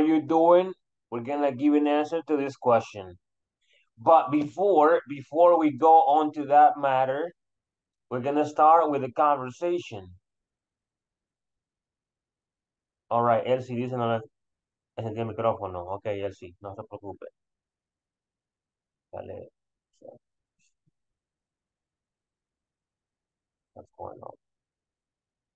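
A young man explains calmly over an online call.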